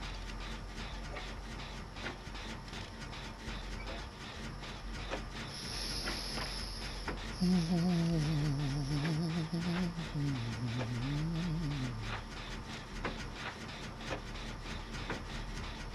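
A torch flame crackles.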